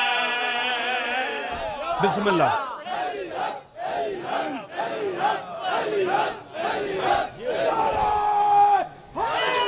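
A man recites in a loud, wailing chant through a microphone and loudspeakers.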